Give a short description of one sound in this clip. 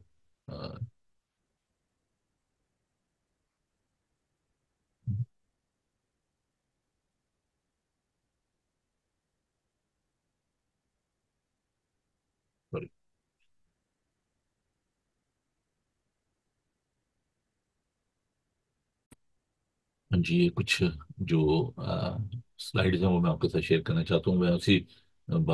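A middle-aged man speaks calmly through a microphone on an online call.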